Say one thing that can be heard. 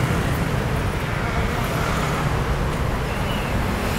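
Motor scooters hum past nearby.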